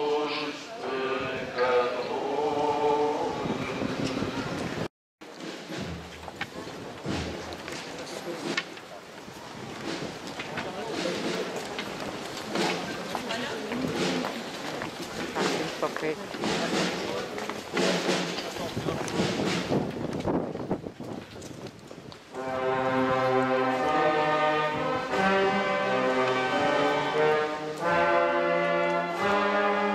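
A crowd sings a slow hymn together outdoors.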